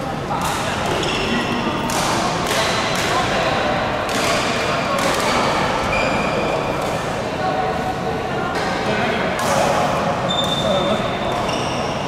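A busy hubbub of many voices fills a large echoing hall.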